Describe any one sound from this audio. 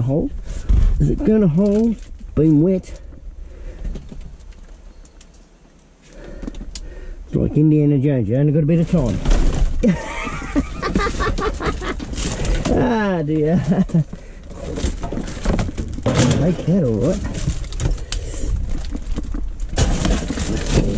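Plastic rubbish rustles and clatters as hands dig through it.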